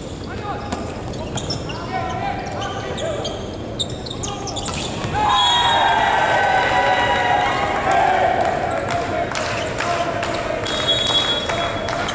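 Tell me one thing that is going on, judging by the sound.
Young men shout to each other on a court.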